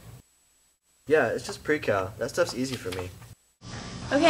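A teenage boy talks.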